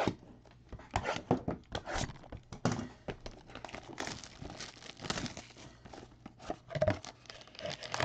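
Cardboard boxes knock and scrape against each other.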